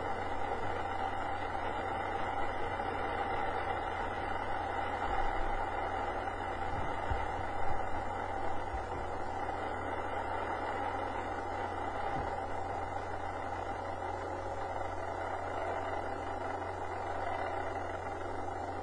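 A rocket roars loudly as it lifts off.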